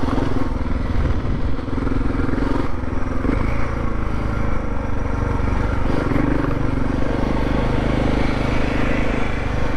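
A motorcycle engine runs close by, revving up and down.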